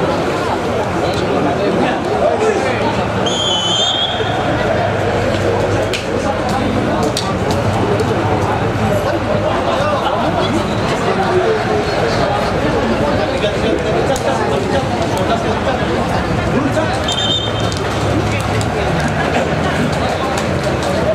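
Young men shout and call out across an open pitch.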